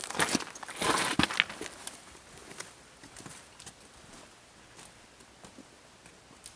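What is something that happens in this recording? Footsteps crunch on the forest floor and fade away.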